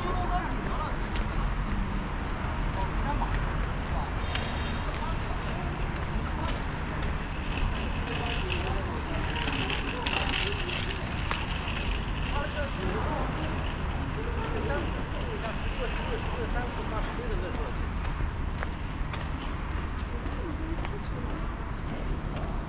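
Distant city traffic hums steadily outdoors.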